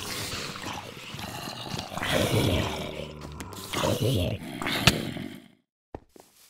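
Zombies groan and grunt.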